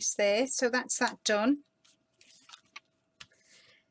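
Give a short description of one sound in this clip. Stiff paper rustles and creases as it is folded.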